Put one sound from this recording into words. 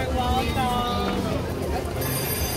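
A woman talks cheerfully nearby.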